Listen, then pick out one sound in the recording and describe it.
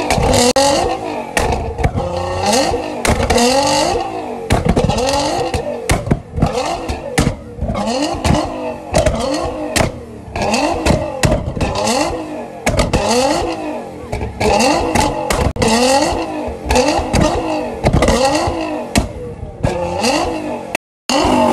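A sports car's exhaust pops and bangs with backfires.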